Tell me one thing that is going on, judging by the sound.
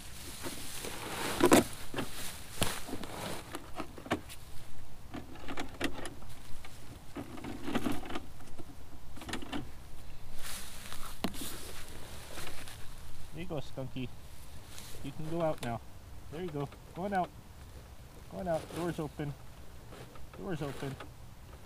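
Hands rustle through dry grass.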